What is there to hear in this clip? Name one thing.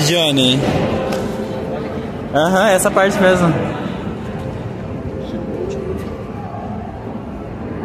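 People murmur in the background.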